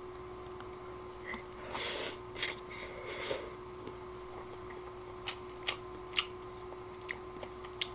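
A young man chews a snack with crunching sounds.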